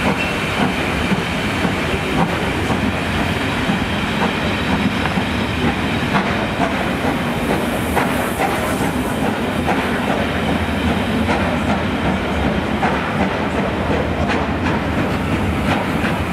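Railway carriages rumble past close by.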